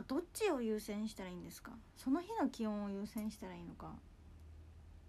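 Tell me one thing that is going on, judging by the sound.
A young woman speaks softly and closely, in a high, sing-song voice.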